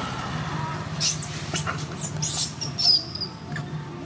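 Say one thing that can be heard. A monkey gives shrill squeals.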